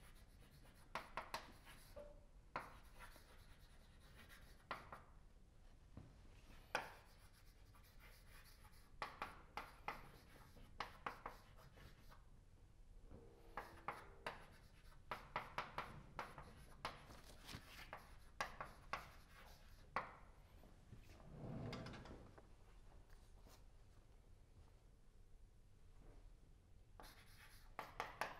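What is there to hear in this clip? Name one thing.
Chalk taps and scrapes on a blackboard in quick bursts.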